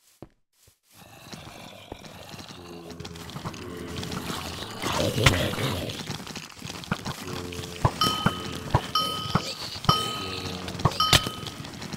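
Zombies groan and growl in a crowd.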